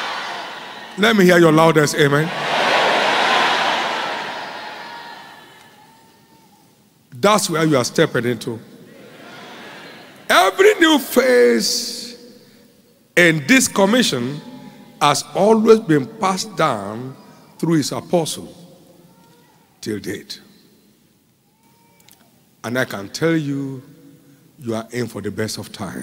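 A man preaches with animation through a microphone in a large echoing hall.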